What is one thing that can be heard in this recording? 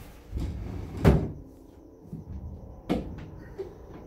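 A heavy wooden box thumps down on a hard floor.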